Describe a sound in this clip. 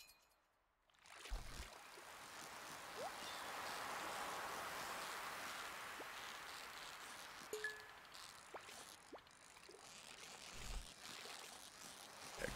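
A fishing reel whirs steadily.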